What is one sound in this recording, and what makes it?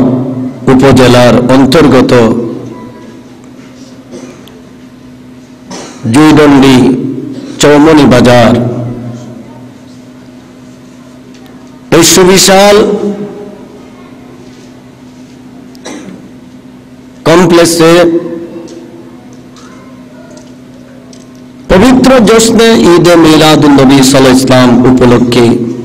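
A man chants loudly into a microphone in bursts, with long echoing pauses.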